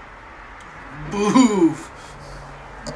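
A man coughs hard.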